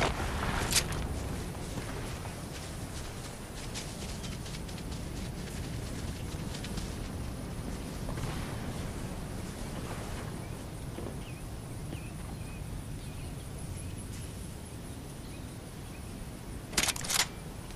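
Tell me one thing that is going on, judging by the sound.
Leaves rustle and swish.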